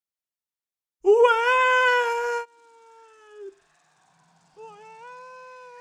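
A man's long scream fades into the distance.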